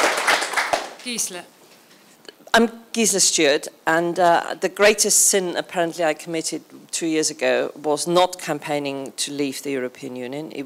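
A second elderly woman speaks into a microphone with animation.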